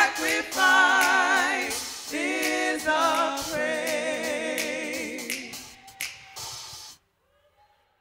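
Women sing loudly together through microphones.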